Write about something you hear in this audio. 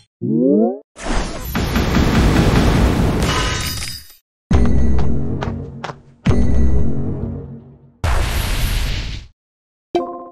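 Loud booming blasts roar.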